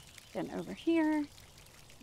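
Water trickles gently over rocks into a pool.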